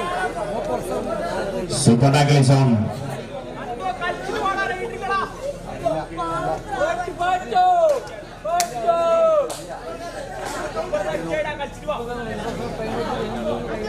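A large crowd murmurs and chatters in the background.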